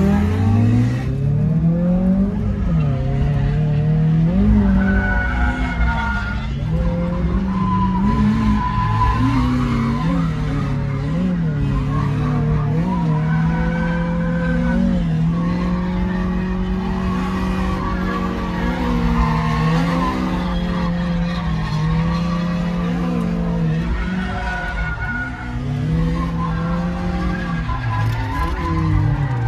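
A car engine roars and revs up and down, heard from inside the car.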